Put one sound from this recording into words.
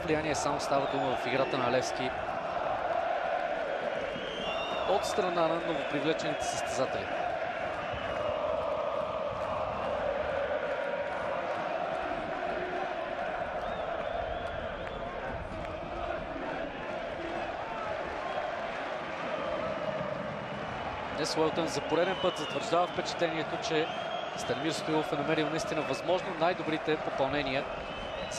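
A crowd whistles sharply in short bursts.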